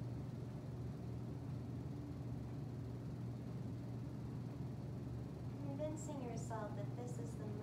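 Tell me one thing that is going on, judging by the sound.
Electric fans hum steadily.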